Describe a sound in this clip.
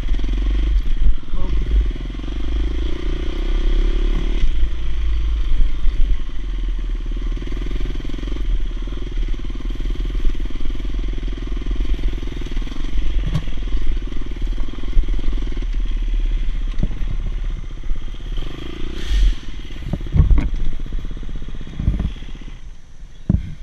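A dirt bike engine drones steadily up close.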